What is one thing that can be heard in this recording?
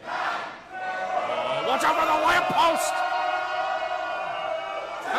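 A crowd cheers and roars loudly.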